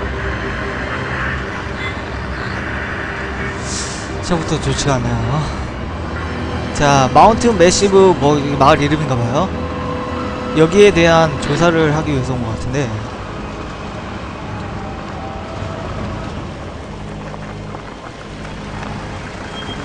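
Tyres crunch over a rough road.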